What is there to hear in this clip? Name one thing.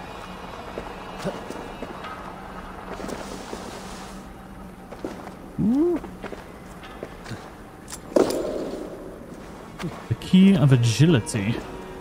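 Footsteps crunch and scrape on rocky ground.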